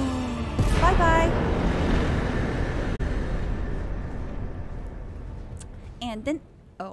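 A young woman exclaims excitedly close to a microphone.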